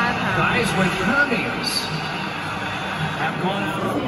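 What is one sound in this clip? A crowd chatters loudly in a large echoing arena.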